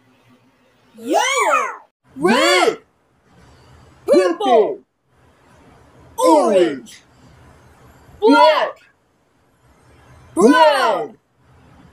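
A child calls out single words loudly, with pauses between them.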